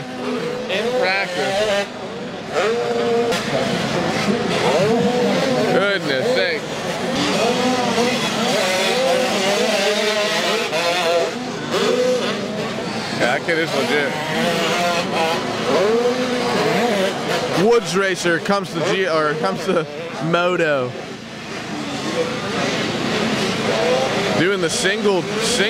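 Several dirt bike engines rev and whine, rising and falling in pitch.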